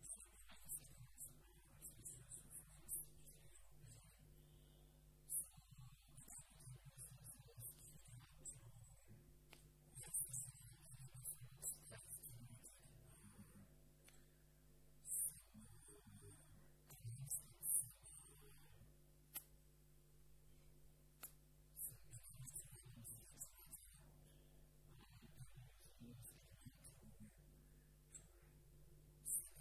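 A man speaks calmly through a microphone in a large hall.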